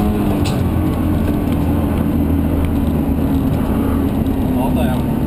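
A car engine roars loudly and steadily from inside the cabin.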